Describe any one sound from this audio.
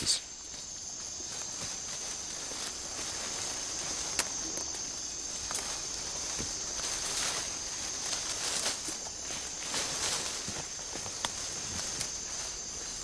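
Leaves rustle and twigs snap as a man pushes through undergrowth.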